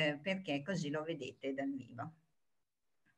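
A woman speaks warmly over an online call.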